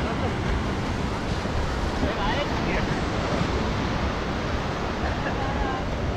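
Waves wash steadily onto the shore.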